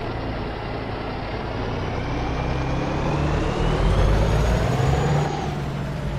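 A heavy truck engine roars as the truck pulls away.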